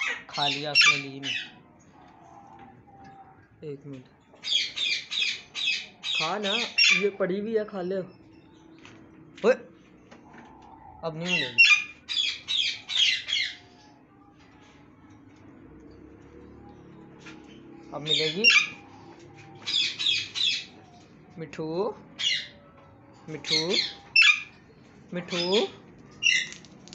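A parrot squawks loudly in repeated shrill bursts.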